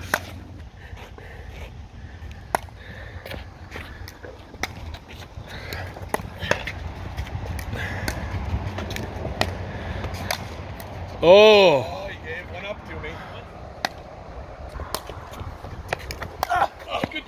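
A paddle pops against a plastic ball in sharp hits.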